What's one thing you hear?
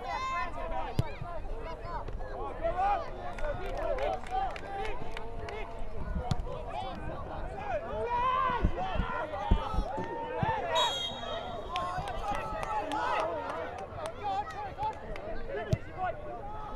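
A football thumps as it is kicked.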